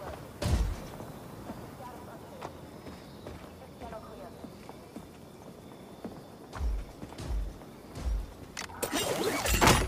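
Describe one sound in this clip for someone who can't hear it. Footsteps thud softly on rocky ground.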